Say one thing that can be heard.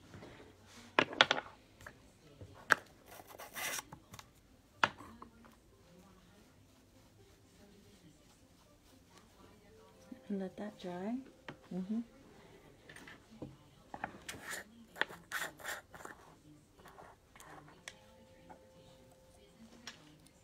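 Small tools click and tap softly close by.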